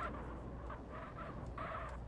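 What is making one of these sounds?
A car engine runs.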